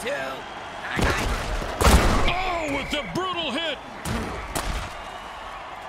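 Players crash into each other with heavy thuds.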